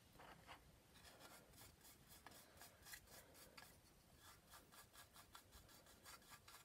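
A paintbrush swishes in quick strokes across wood.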